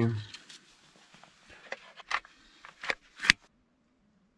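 A plug clicks into a socket.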